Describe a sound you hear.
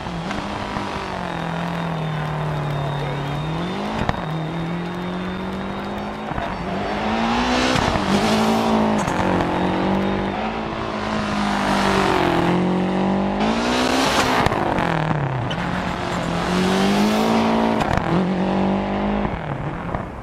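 A rally car engine roars and revs hard, rising and falling as gears change.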